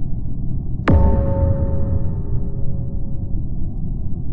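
A bright game chime rings out and slowly fades.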